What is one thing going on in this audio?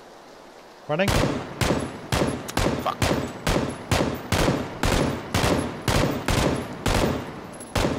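A rifle fires shot after shot in a steady rhythm.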